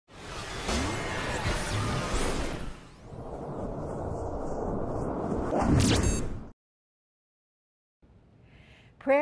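A woman speaks toward the listener.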